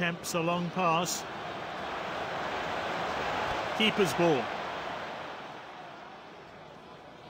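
A stadium crowd roars steadily, then slowly fades.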